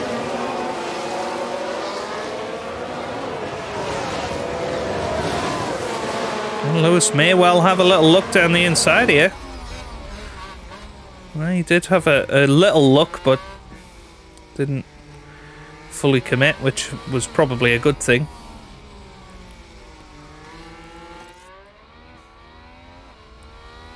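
Racing car engines roar and whine as the cars speed past.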